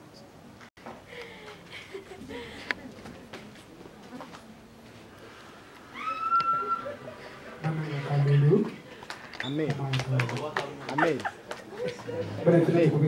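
Women laugh and chatter nearby.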